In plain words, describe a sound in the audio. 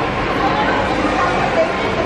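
A baby babbles softly.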